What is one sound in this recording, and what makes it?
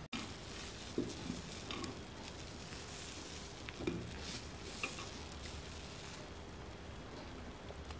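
A piece of bread dips softly into a glass of milk.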